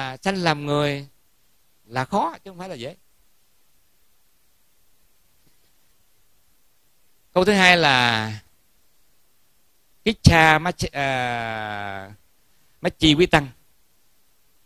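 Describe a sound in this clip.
A middle-aged man speaks calmly into a microphone, in short phrases with long pauses.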